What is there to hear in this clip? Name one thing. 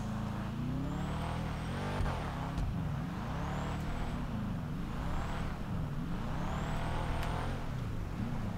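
A car engine revs hard and rises and falls as the car drifts.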